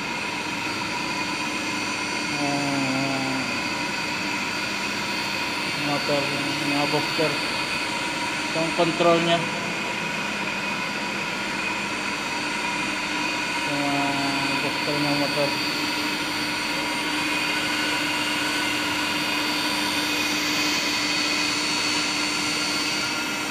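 Electric pumps hum steadily in an echoing room.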